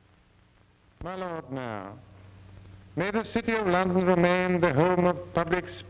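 An elderly man reads out a speech aloud, heard through a loudspeaker.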